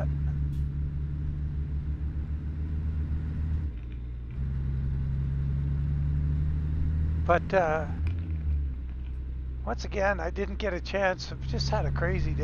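A truck engine rumbles steadily, with a brief dip in the middle.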